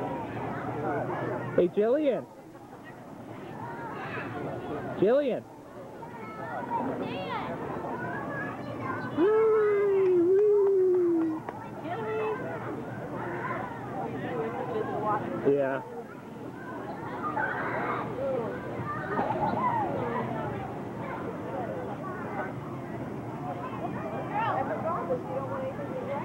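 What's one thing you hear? Pool water laps and splashes gently.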